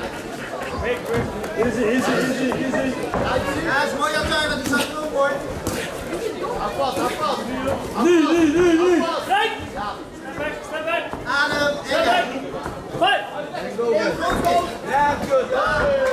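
Gloved punches and kicks thud against bodies.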